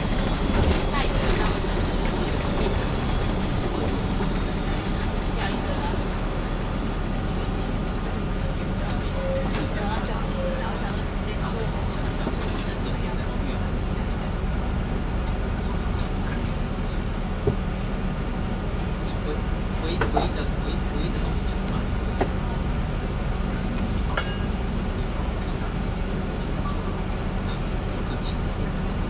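Traffic hums on a busy street.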